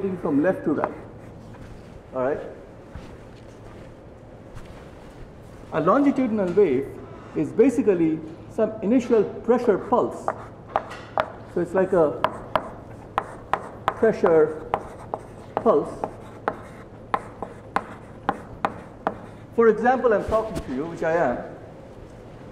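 A man lectures calmly in a large room, his voice carried through a microphone.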